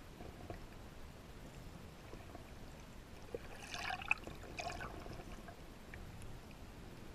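Water gurgles and bubbles close by underwater.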